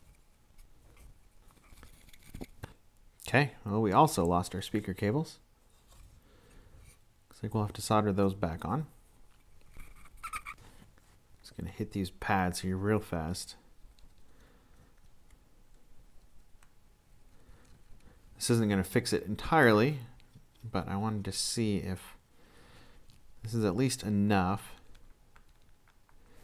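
Small plastic parts click and rustle as they are handled.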